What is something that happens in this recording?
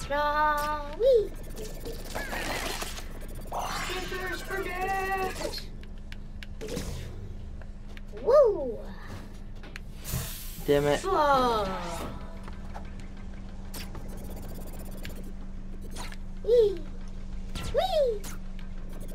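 Short cartoonish springy blips sound as a small character jumps.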